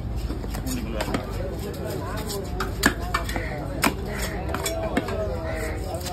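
A heavy knife chops into a fish on a wooden block with sharp thuds.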